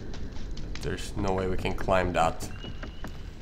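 A young man speaks with animation into a microphone, close by.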